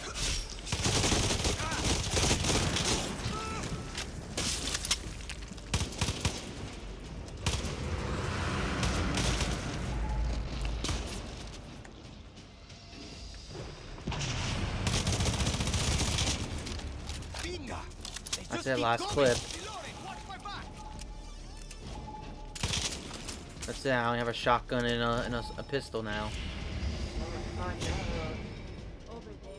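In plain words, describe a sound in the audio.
A rifle fires bursts of rapid shots.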